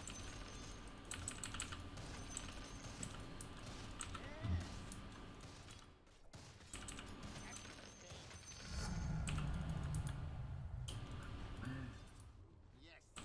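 Video game combat clashes and crackles with sharp hits and spell effects.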